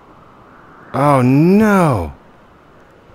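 A man hums a sliding tune into a close microphone.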